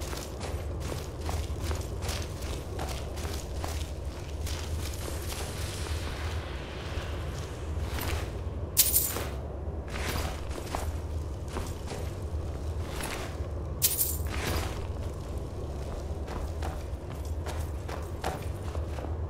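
Footsteps crunch on snowy ground at a steady walking pace.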